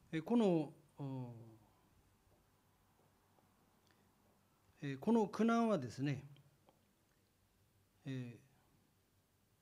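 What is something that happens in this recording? A man speaks calmly into a microphone, in short phrases.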